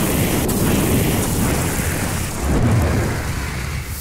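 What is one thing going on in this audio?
Sand sprays and hisses as a figure dashes across a dune.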